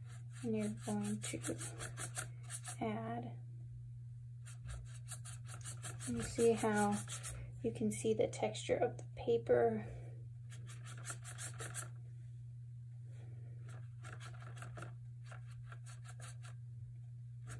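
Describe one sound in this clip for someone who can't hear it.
A paintbrush softly brushes across paper.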